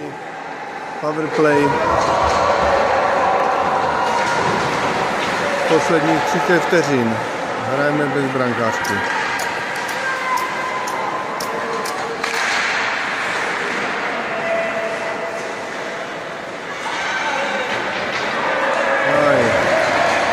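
Spectators chatter and shout in a large echoing arena.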